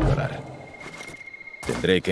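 A person lands with a thud on a roof.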